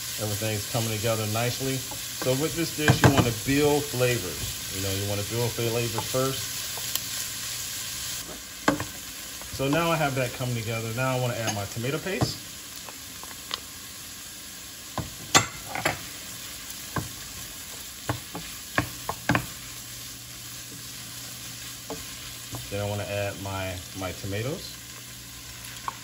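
Food sizzles gently in a pot.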